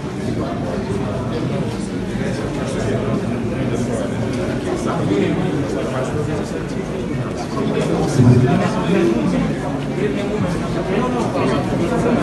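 Many men and women chatter at once nearby.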